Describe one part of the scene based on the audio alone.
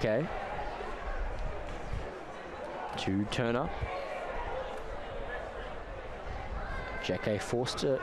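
Footballers shout loudly to each other across an open pitch.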